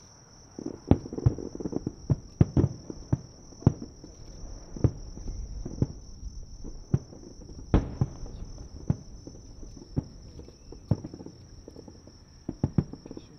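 Fireworks burst with loud booms and echo in the distance.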